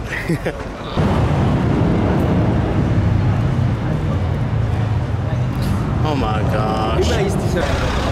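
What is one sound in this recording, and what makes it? A sports car's engine idles with a deep rumble.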